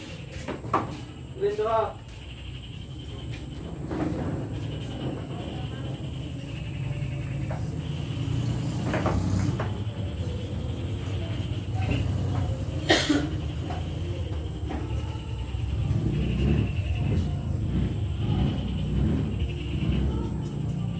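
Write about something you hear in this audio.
Men talk casually nearby in a low murmur.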